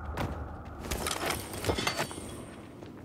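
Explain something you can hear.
A wooden crate lid is lifted open.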